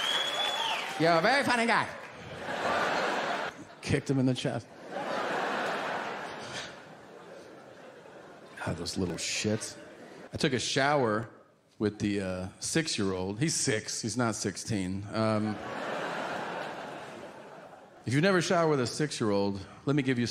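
A man speaks into a microphone to an audience.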